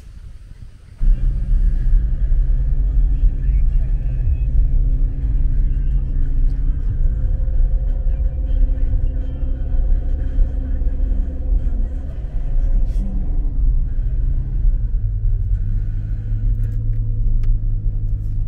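A car engine hums steadily from inside the vehicle.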